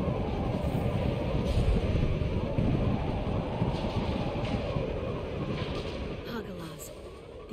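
A spaceship's engines roar with a deep, steady rumble.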